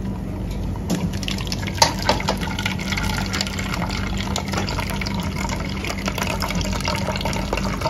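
A thick liquid pours through a mesh strainer into a cup.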